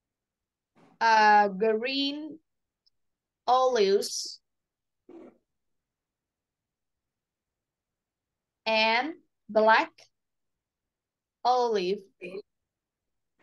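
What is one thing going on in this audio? A woman speaks slowly and clearly into a microphone, in short phrases with pauses.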